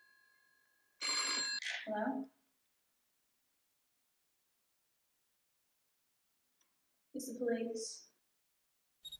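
A young woman speaks briefly and quietly into a telephone.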